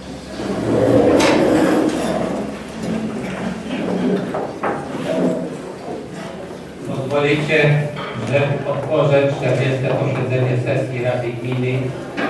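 A room full of people murmurs and talks.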